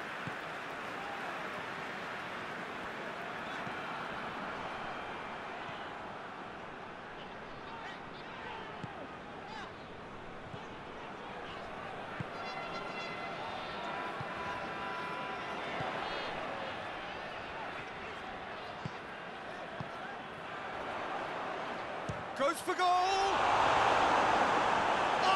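A large crowd murmurs and chants steadily in a stadium, swelling into a roar near the end.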